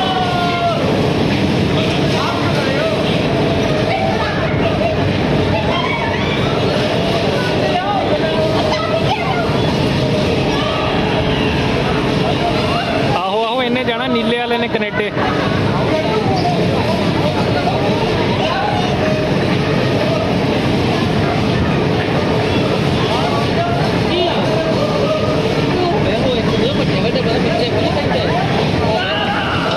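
Bumper cars whir around a rink.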